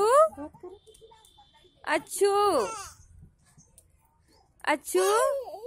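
A baby cries and wails in short bursts close by.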